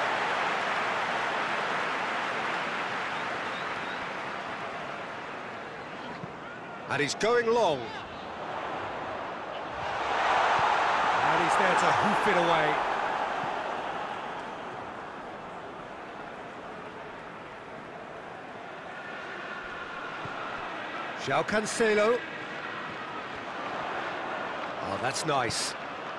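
A large stadium crowd roars steadily, swelling loudly for a few seconds midway.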